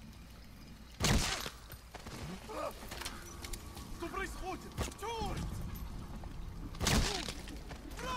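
A gun fires sharp single shots.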